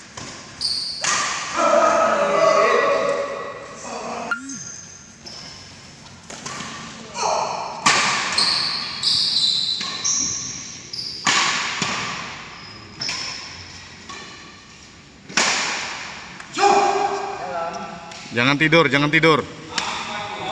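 Men shout and call out during play in an echoing hall.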